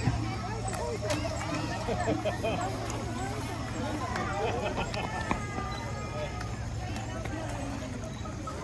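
Children and adults chatter and call out outdoors.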